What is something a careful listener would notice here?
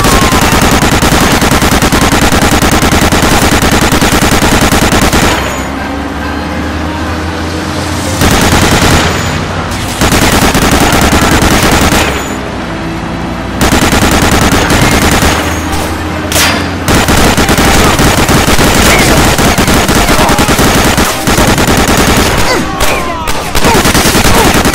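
A heavy machine gun fires long, rapid bursts.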